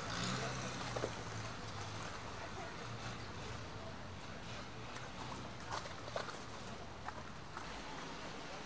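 Motorboat engines drone steadily on the water.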